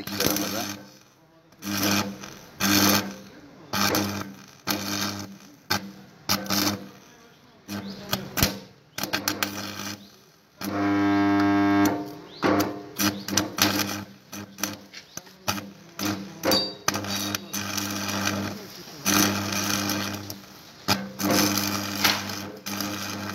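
An electric welder buzzes and crackles in short bursts.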